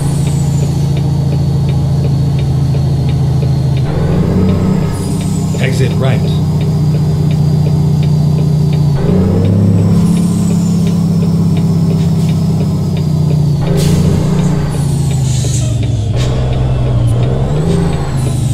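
A truck engine drones steadily, shifting pitch as gears change.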